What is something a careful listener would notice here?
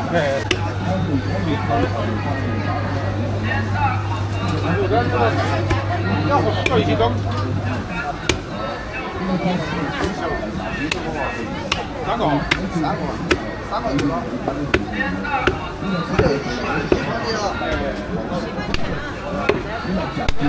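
Men and women chatter in a busy crowd nearby.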